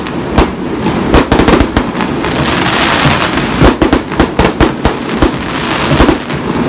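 Fireworks burst overhead with sharp, rapid bangs.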